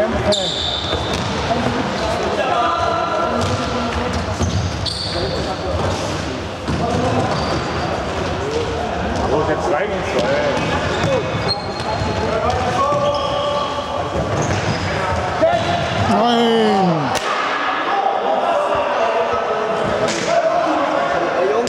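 A ball thumps as it is kicked across a hard floor.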